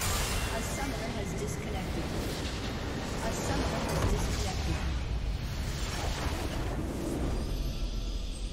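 Magic blasts and spell effects crackle and boom in a busy fight.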